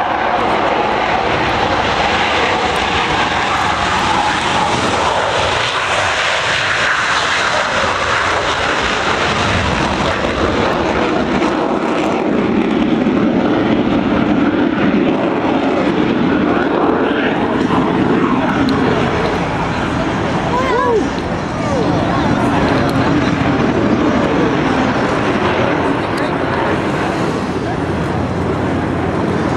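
Jet planes roar loudly overhead.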